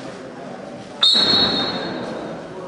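A whistle blows sharply.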